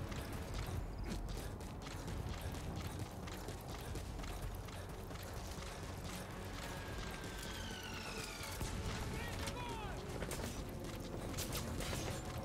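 Quick footsteps run over rough ground.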